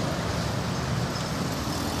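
A truck engine rumbles as it drives past close by.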